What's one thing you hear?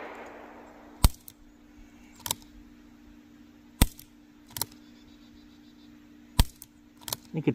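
A revolver's hammer clicks as it is cocked.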